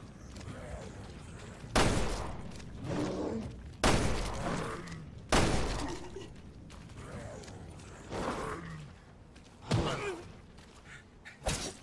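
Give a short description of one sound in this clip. A monster groans and snarls.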